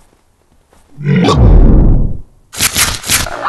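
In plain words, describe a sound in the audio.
A heavy blow lands with a loud, deep thud.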